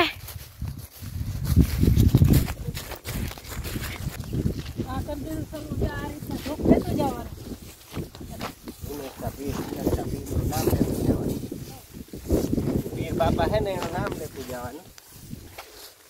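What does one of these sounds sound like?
Wind rumbles against the microphone.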